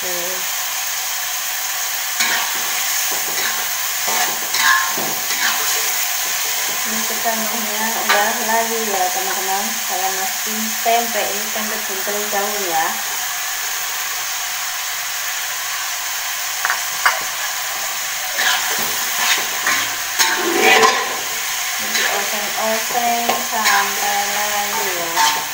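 Food sizzles steadily in a hot wok.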